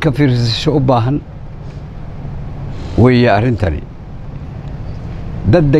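An elderly man speaks slowly and firmly into a microphone, with pauses between phrases.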